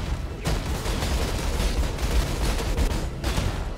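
Fire roars and explodes in a burst.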